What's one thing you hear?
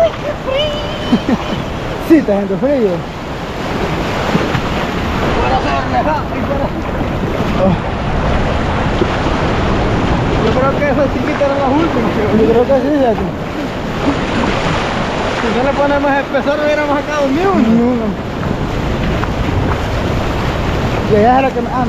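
Waves wash and surge steadily close by.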